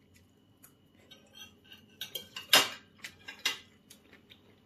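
A knife and fork scrape and clink against a plate.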